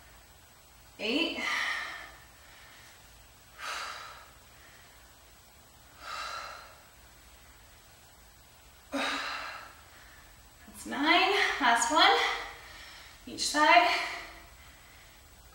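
A young woman speaks with energy, calling out in short bursts.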